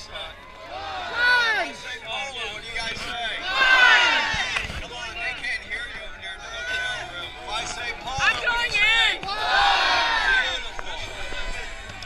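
A crowd cheers and whoops loudly.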